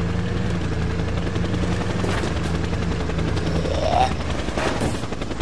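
A jeep engine hums steadily as the vehicle drives.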